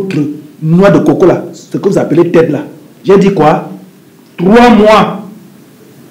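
A man speaks loudly and emotionally nearby.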